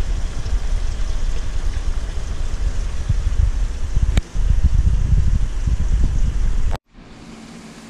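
Water in an aquarium filter hums and burbles steadily.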